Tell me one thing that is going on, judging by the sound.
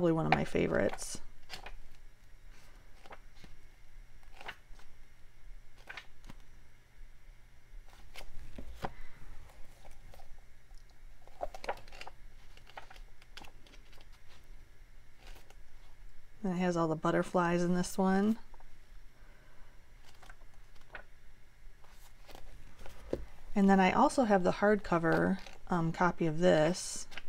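Paper pages flip and rustle quickly.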